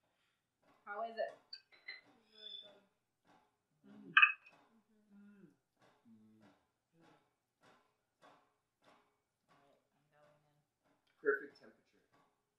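Forks clink against plates.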